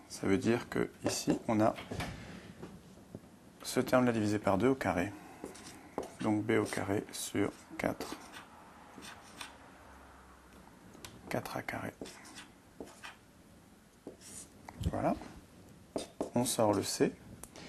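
A man explains calmly in a steady lecturing voice, close by.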